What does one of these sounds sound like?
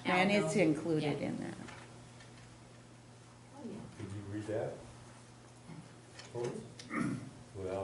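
An elderly woman speaks calmly into a microphone, heard from across a large room.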